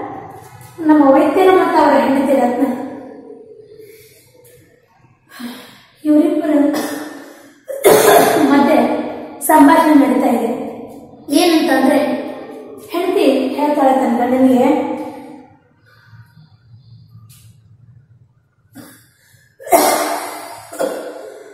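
A woman speaks clearly and with animation, close to a microphone.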